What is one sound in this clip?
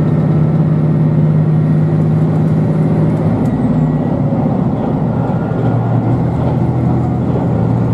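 A train rumbles and hums steadily as it travels along the tracks.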